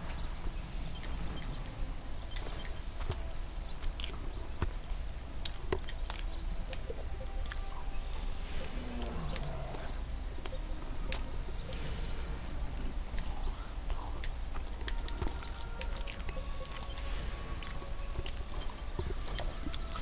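Soft game menu clicks and chimes sound now and then.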